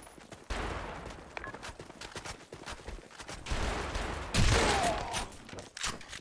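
Gunshots boom loudly and echo.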